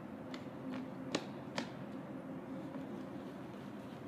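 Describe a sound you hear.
A skateboard clacks sharply on concrete nearby.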